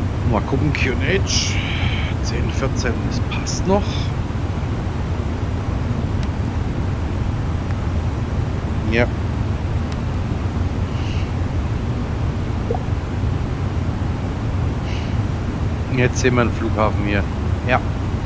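A jet's engines drone steadily inside the cockpit.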